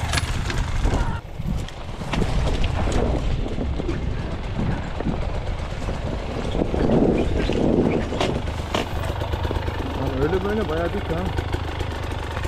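Brush scrapes and snaps against a dirt bike.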